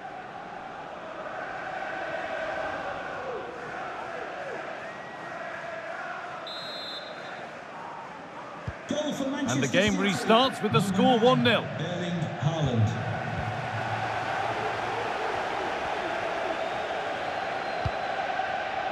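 A large stadium crowd chants and cheers steadily.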